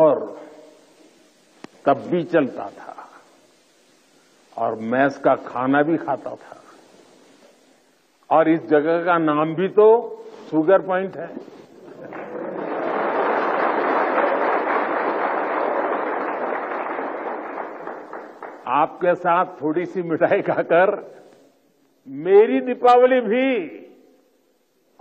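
An elderly man speaks into a microphone in short bursts with pauses.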